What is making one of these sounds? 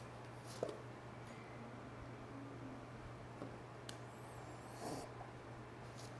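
Playing cards shuffle and flutter.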